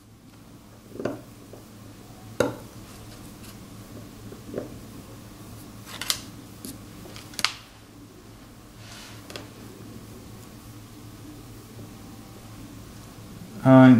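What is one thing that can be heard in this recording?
A small metal blade scrapes and scratches against stone in short strokes.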